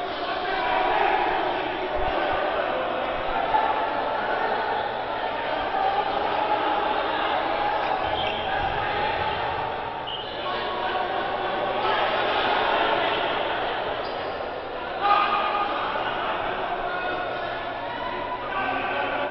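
A crowd of men shouts and yells excitedly in a large echoing gym.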